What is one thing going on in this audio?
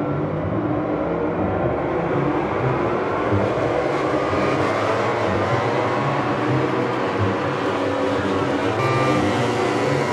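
Several motorcycles roar past, rising and falling in pitch.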